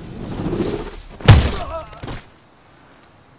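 A heavy blow lands with a loud thump.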